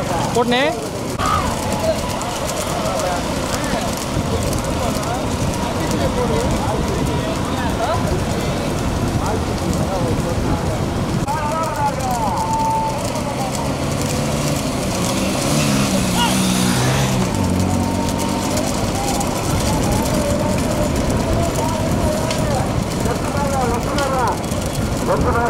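Hooves clatter quickly on a paved road.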